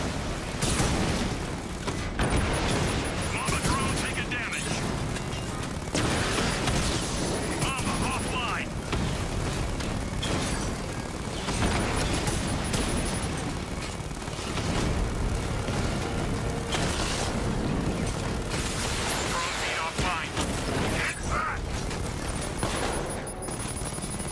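Cannon shots and explosions burst in quick bursts.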